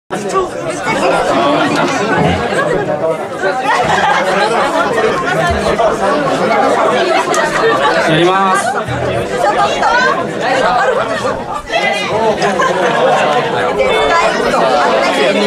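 A rock band plays loudly, heard live in a crowded hall.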